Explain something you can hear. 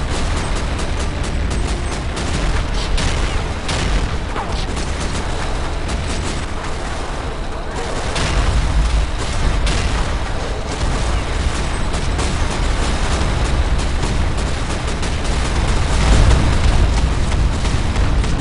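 A heavy gun fires in rapid, continuous bursts.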